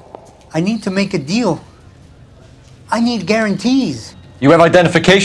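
A young man speaks pleadingly.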